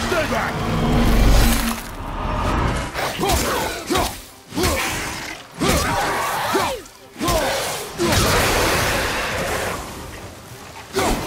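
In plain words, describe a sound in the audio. An axe strikes with heavy thuds.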